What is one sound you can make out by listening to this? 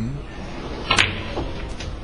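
A cue tip taps a snooker ball.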